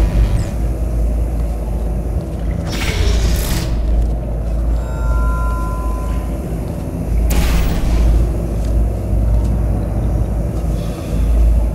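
A laser beam hums steadily.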